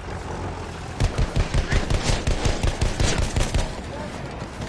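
A machine gun fires rapid bursts at close range.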